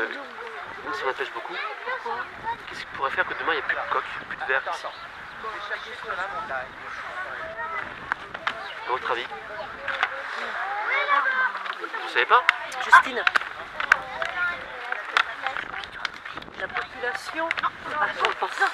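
A large flock of shorebirds calls with shrill piping cries.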